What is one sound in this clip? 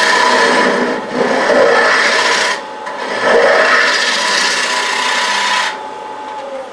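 A chisel scrapes and shaves spinning wood on a lathe.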